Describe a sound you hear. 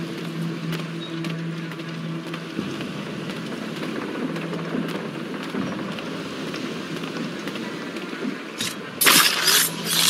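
Footsteps thud quickly on a wooden deck.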